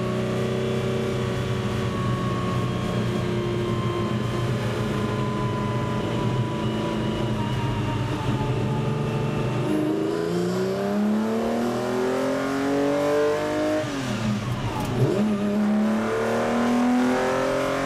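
A race car engine roars from inside the cabin, revving up through the gears.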